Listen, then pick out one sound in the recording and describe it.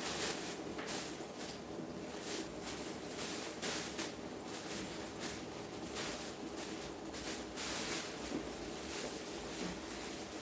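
A plastic cape rustles and crinkles as it is shaken out.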